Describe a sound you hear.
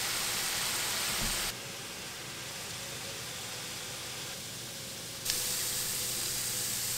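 Vegetables sizzle and crackle in a hot pan.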